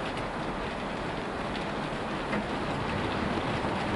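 A small model train hums faintly in the distance as it approaches.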